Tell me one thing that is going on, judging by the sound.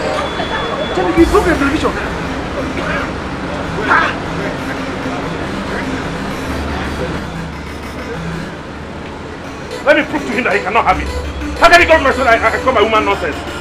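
A man speaks angrily and loudly nearby.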